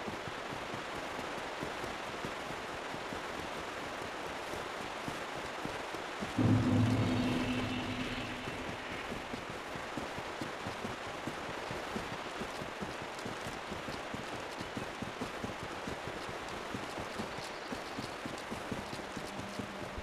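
Footsteps with clinking armour crunch steadily over stone and grass.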